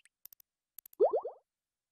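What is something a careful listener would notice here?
A springy cartoon boing rises quickly a few times.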